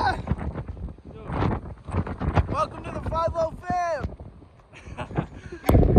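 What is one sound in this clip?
Two young men laugh close to the microphone.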